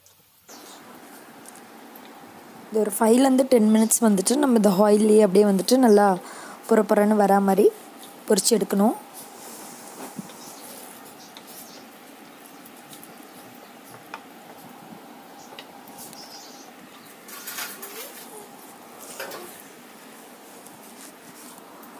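A wooden spatula scrapes and stirs in a pan.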